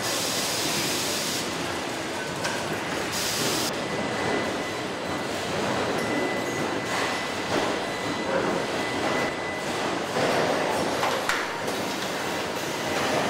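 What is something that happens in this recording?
Factory machinery hums and clanks steadily in a large echoing hall.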